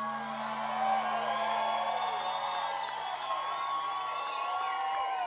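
An acoustic guitar chord rings out and then stops.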